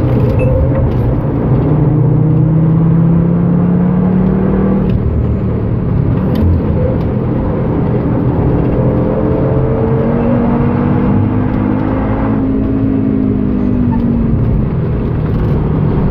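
Tyres rumble on a racetrack.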